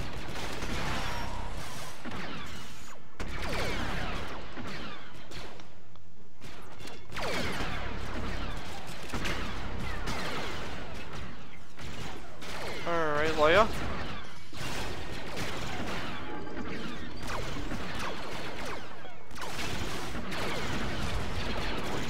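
Blaster guns fire rapid, zapping shots.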